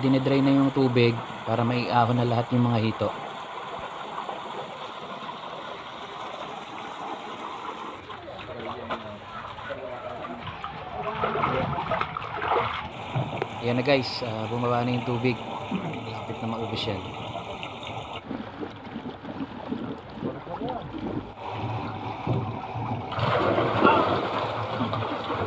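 Men talk with each other nearby, outdoors.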